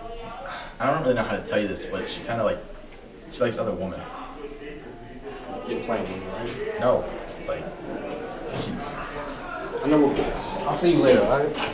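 Two young men talk calmly nearby.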